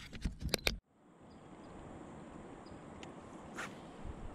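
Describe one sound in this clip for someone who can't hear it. Water ripples and laps around a kayak.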